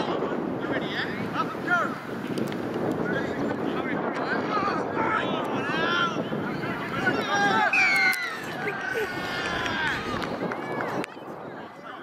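Young men shout and call out to each other across an open field, heard from a distance.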